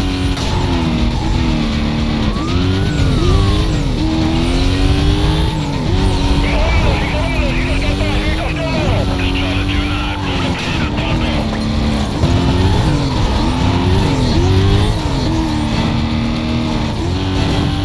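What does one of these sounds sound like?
Police sirens wail nearby.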